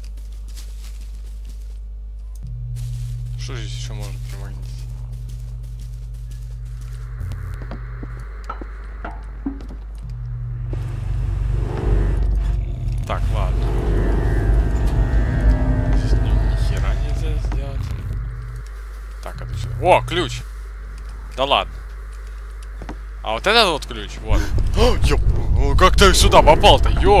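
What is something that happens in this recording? A young man talks close to a microphone, with animation.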